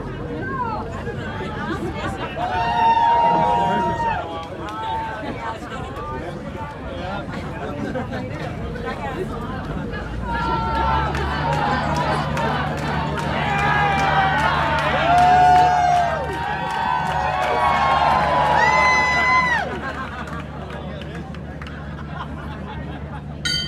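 A crowd chatters and cheers outdoors.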